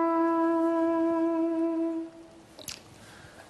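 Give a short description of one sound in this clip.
A trumpet plays a long held note up close.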